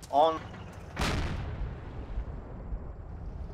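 An explosion booms nearby and rumbles away.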